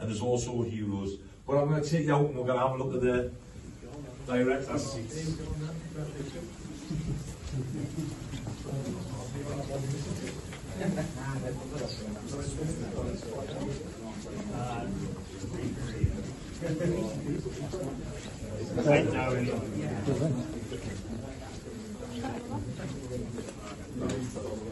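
A crowd of men and women chat nearby.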